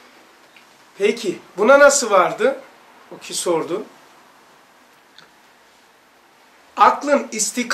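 A middle-aged man speaks with animation close by, in short bursts with pauses.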